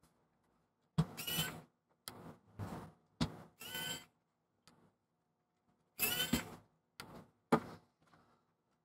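A screwdriver clicks against metal screws.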